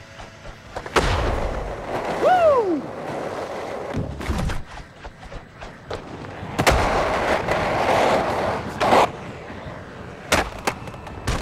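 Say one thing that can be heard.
A skateboard deck clacks down on landing.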